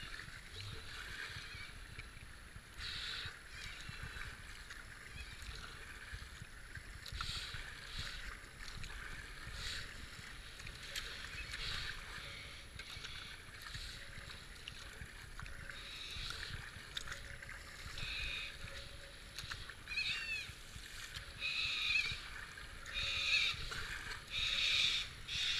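Fast water rushes and splashes all around.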